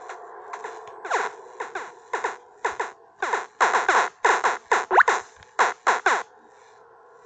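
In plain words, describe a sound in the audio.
Quick punching thuds land in rapid bursts.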